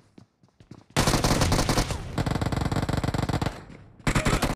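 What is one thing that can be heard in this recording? A submachine gun fires rapid bursts up close.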